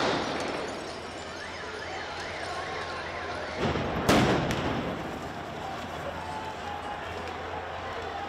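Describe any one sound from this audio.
Smoke grenades hiss loudly outdoors.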